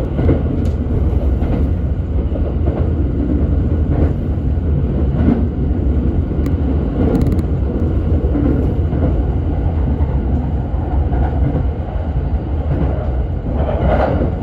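A car engine rumbles steadily from inside a moving vehicle.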